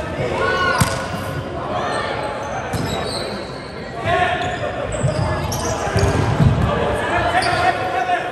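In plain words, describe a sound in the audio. Sounds echo through a large hall.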